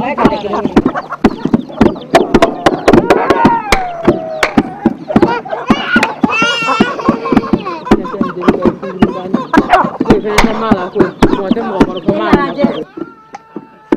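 Chickens cluck close by.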